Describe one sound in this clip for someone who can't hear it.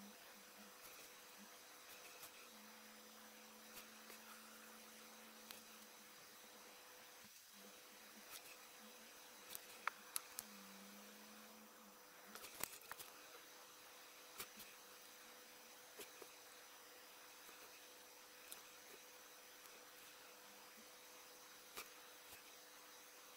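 A small brush taps and scrapes lightly against a plastic part.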